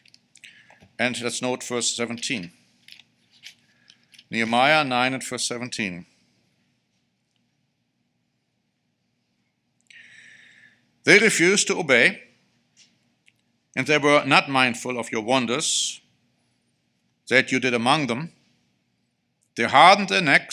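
A middle-aged man speaks calmly into a microphone in short phrases, with pauses between.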